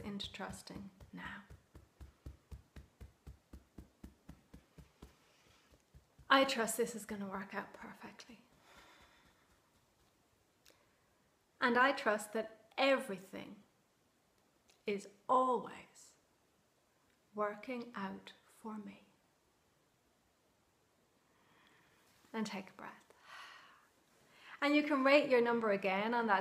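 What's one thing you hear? A woman speaks calmly and warmly, close to a microphone.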